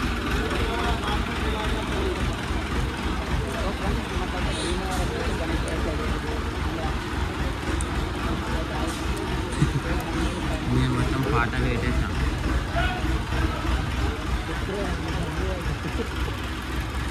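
A crane engine rumbles steadily.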